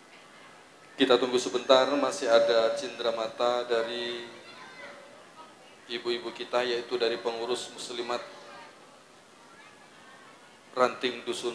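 A man speaks loudly through a loudspeaker outdoors.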